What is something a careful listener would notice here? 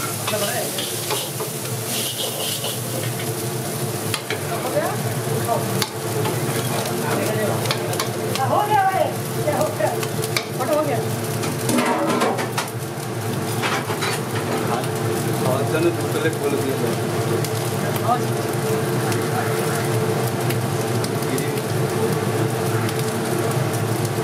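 A metal ladle scrapes and clinks against a wok.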